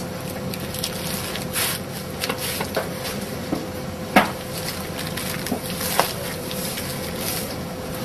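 Hands pat and rustle a sheet of dried seaweed.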